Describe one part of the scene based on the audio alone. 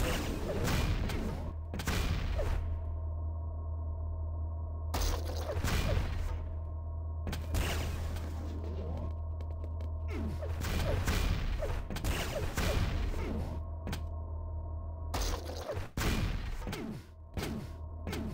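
Gunfire blasts out in quick bursts.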